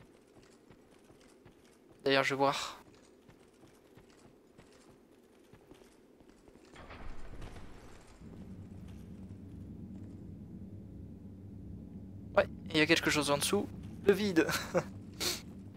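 Heavy footsteps thud and clink on stone.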